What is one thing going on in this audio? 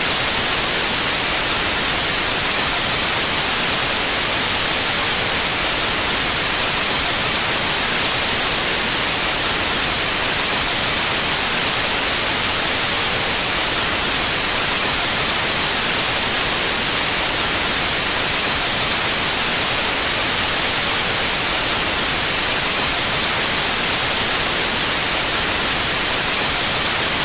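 Loud static hisses steadily.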